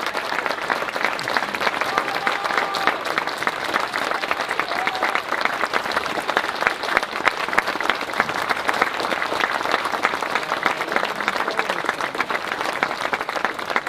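A crowd applauds steadily outdoors.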